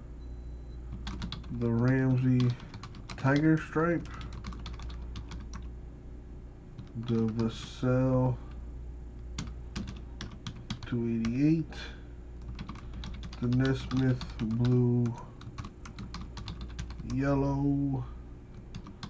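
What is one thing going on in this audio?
Keys clatter as a keyboard is typed on.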